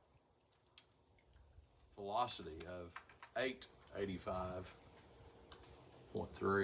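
Metal clicks as a handgun is handled.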